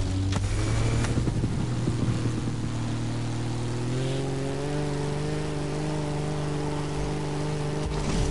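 A propeller plane engine drones steadily, its pitch rising slightly.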